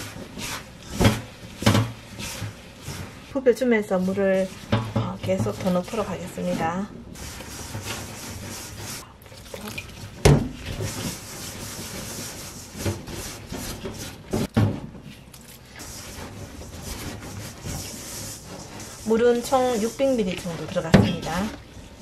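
Hands knock against a metal bowl.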